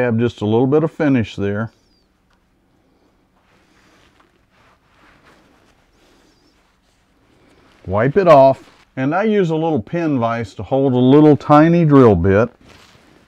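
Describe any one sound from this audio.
A man speaks calmly and explains, close to a microphone.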